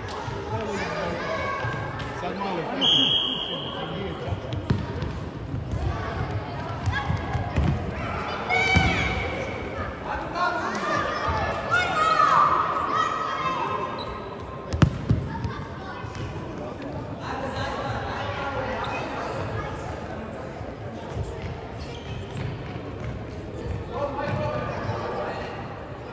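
Young boys shout and call out across a large echoing hall.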